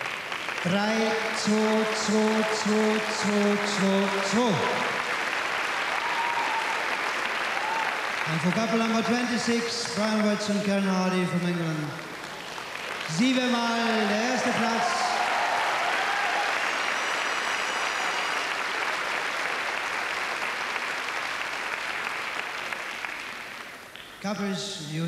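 A crowd applauds and cheers in a large echoing hall.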